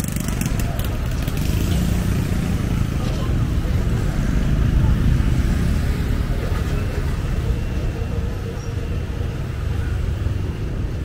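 Motorbike engines hum and putter along a busy street.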